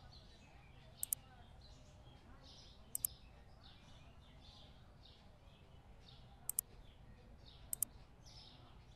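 Sharp double clicks sound a few times.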